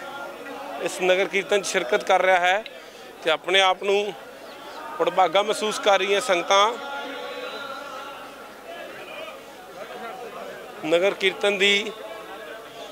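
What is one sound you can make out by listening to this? Men chant loudly in short bursts.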